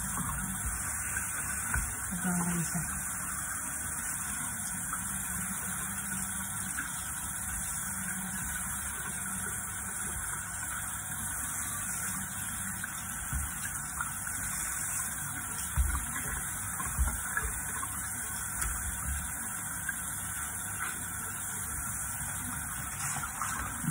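Hands squish and squeeze wet roots under running water.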